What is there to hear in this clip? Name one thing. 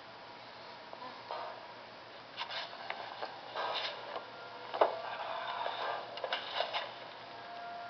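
A young woman moans, muffled through a gag.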